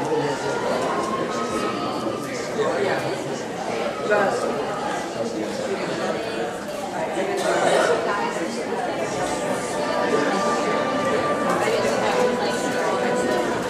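A man projects his voice from a distance in a large hall.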